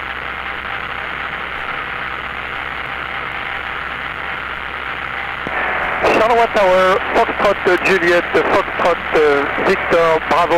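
A single-engine propeller plane's engine drones in flight, heard from inside the cockpit.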